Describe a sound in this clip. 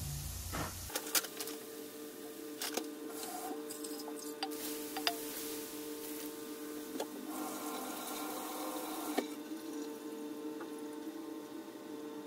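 Small bubbles crackle and pop.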